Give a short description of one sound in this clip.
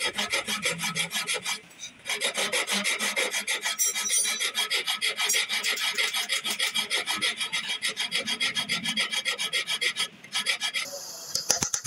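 A metal file rasps quickly back and forth across metal.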